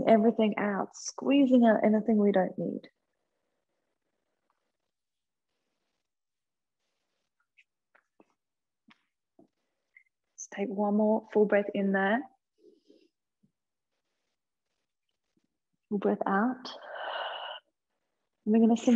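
A woman speaks calmly and clearly close to a microphone, in short phrases with pauses.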